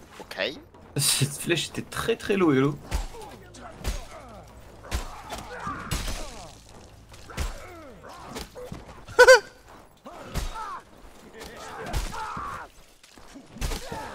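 Swords clash and strike armour with sharp metallic hits.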